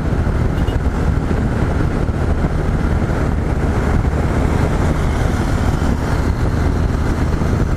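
Wind roars loudly past a microphone.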